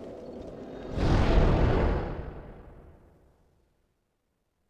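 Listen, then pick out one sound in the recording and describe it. A deep whooshing rush swells and slowly fades away.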